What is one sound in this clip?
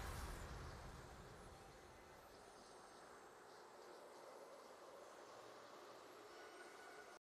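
A game's victory fanfare rings out and fades.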